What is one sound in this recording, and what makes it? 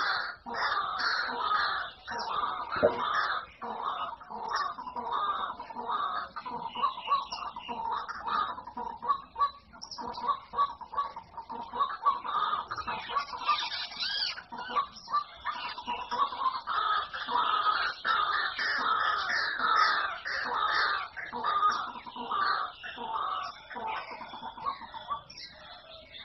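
Many small birds chirp and twitter busily outdoors.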